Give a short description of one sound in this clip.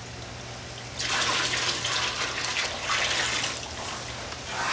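Liquid pours and splashes from a bucket.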